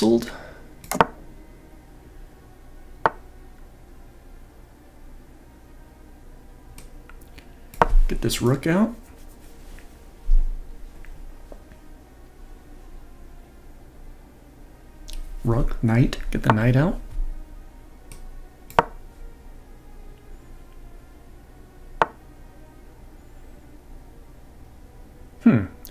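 Chess pieces click sharply as moves are made.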